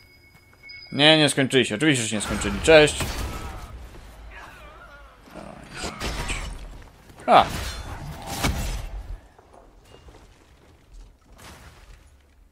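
Magic spells blast and crackle loudly.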